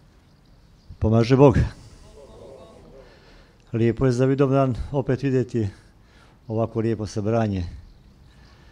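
An elderly man speaks slowly and calmly into a microphone, in short phrases.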